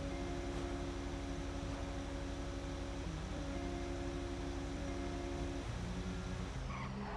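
A truck engine drones steadily as it drives along a road.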